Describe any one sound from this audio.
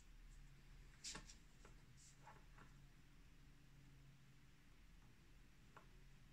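A small metal tool scrapes and clicks against a pen nib.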